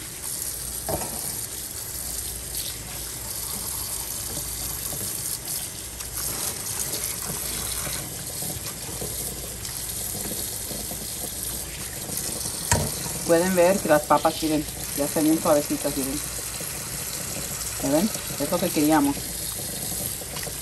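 Tap water runs steadily into a metal sink.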